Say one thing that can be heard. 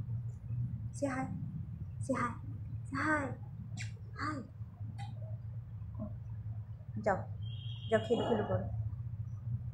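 A young woman speaks softly and close by in short bursts.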